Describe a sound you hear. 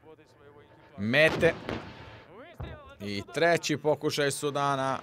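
A tank cannon fires with a loud boom.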